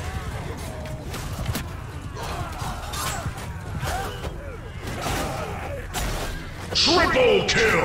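Horse hooves thunder across the ground in a battle.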